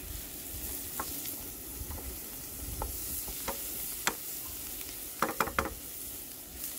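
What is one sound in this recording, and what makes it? A wooden spatula scrapes and knocks against a frying pan.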